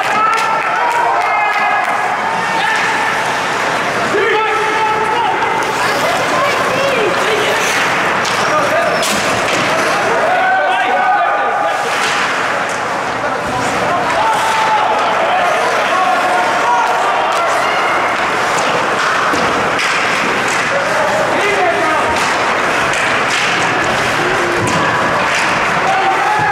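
A crowd of spectators chatters and cheers in a large echoing rink.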